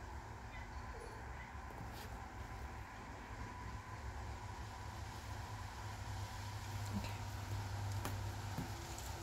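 A brush dabs softly on a small figure.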